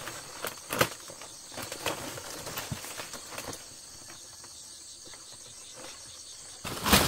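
Large dry palm leaves rustle and crackle as they are carried.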